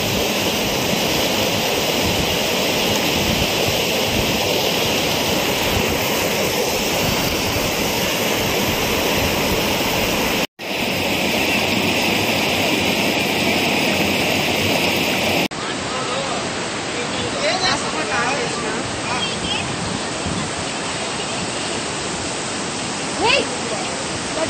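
Floodwater rushes and roars loudly past.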